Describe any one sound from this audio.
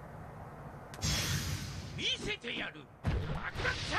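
An energy blast bursts with a loud whoosh.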